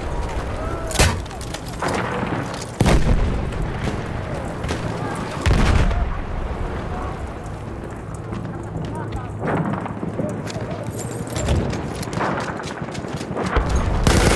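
Explosions boom nearby and in the distance.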